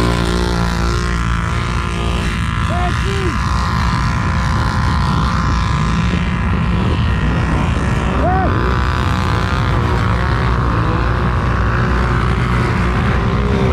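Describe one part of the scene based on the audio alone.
Several quad bike engines rumble and rev nearby.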